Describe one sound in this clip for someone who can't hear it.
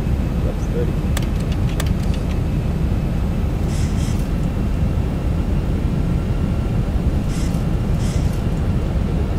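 Jet engines roar steadily with a low rumble.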